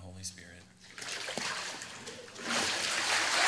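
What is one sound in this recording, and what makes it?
Water splashes as a person is dunked.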